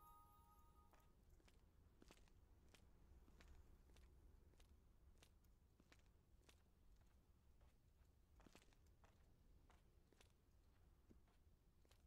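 Footsteps crunch steadily over dry ground.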